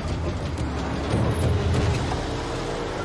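Tyres crunch on a gravel road.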